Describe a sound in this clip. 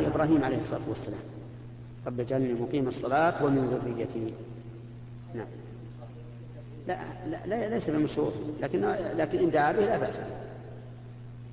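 An elderly man recites in a chanting voice through a loudspeaker, echoing in a large hall.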